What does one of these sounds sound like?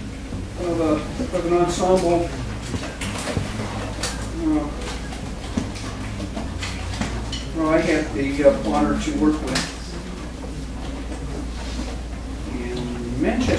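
Wind instruments play short notes.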